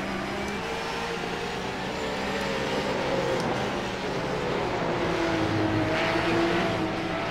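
A racing car engine roars steadily, its pitch rising and falling with gear changes.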